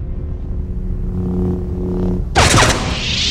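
A lightsaber hums loudly.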